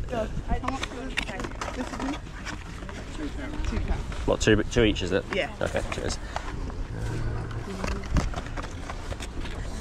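A young woman talks nearby outdoors.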